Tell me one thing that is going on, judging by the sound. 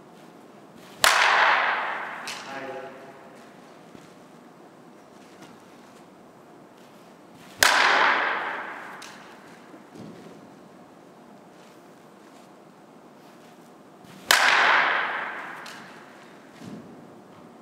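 A bat cracks against a ball, ringing in a hard echoing room.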